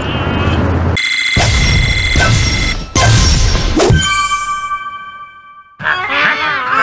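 A bright chiming fanfare plays.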